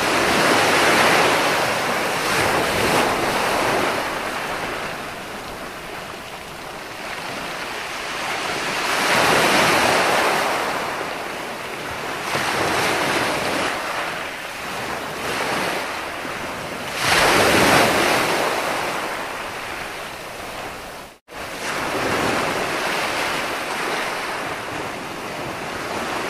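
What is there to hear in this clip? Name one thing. Waves break and wash up on a shore in surging rushes.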